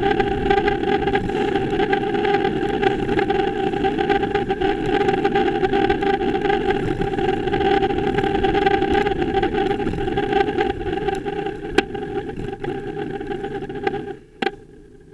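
Wind rushes loudly past, outdoors.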